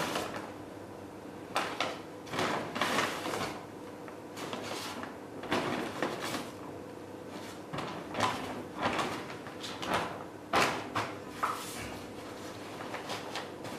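Folded paper bags are set down with soft thuds.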